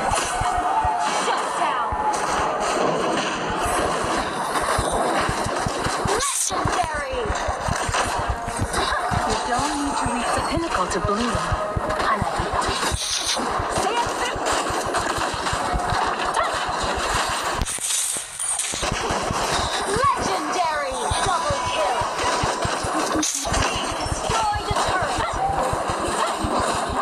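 Game spell effects and hits crash and whoosh in quick bursts.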